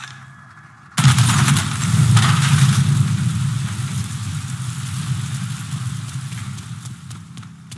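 A loud explosion booms and its roar slowly dies away.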